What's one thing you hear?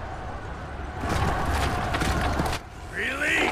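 A horse gallops.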